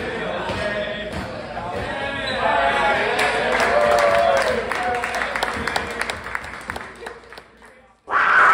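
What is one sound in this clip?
A crowd of young men sings and cheers loudly indoors.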